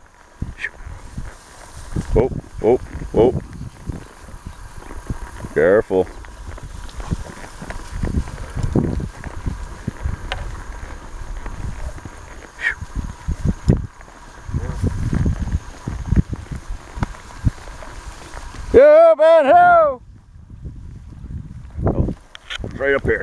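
Tall grass rustles against a horse's legs.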